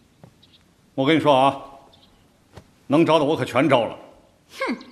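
A man speaks nearby in a casual, animated way.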